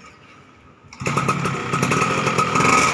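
A two-stroke underbone motorcycle engine starts and runs with a loud, crackling rasp.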